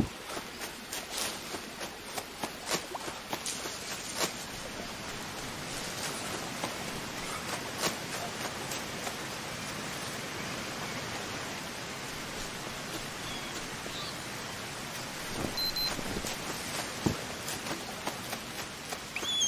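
Leaves rustle and swish as someone pushes through dense foliage.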